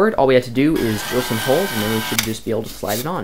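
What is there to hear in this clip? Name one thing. A drill whirs as it bores into plastic.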